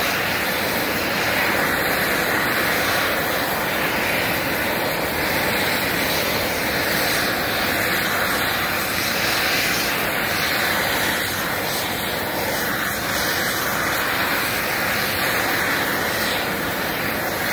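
A gas torch roars steadily up close.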